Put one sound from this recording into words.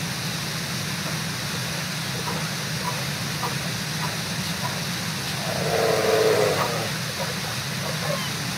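Bear cubs squeal and bawl close by.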